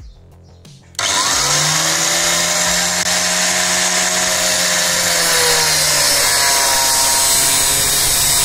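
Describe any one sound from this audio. An abrasive cut-off saw whines loudly as it cuts through metal.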